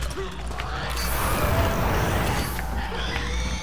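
A flamethrower roars in a burst.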